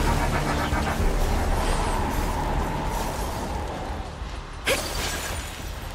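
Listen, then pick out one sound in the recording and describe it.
Icy magic blasts crash and shatter.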